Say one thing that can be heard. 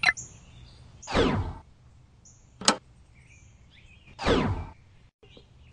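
Two falling whooshes sweep past as the scene changes.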